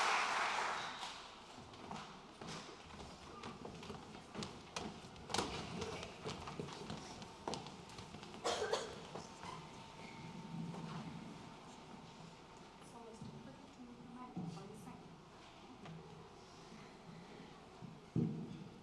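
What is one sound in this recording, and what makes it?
Footsteps shuffle and knock on stage risers in a large echoing hall.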